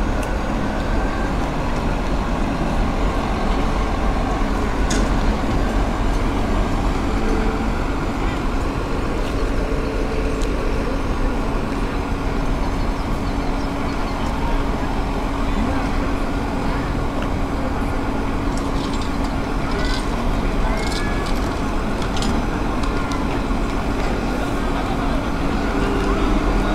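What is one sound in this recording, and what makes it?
A crowd murmurs faintly in a wide open space outdoors.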